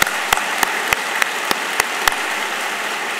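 A man claps his hands close to a microphone.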